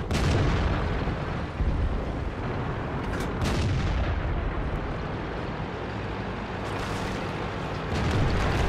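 A tank engine rumbles steadily as it drives.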